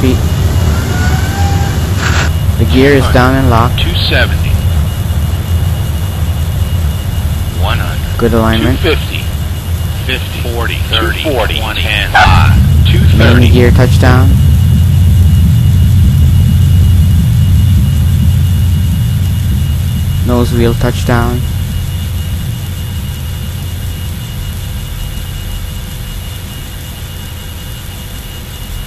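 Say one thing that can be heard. A jet engine roars steadily as an aircraft rolls down a runway.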